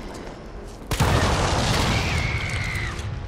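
A barrel explodes with a loud, rumbling blast.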